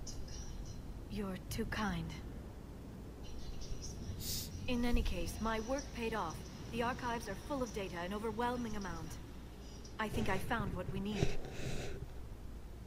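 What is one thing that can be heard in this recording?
A woman answers in a calm, gentle voice.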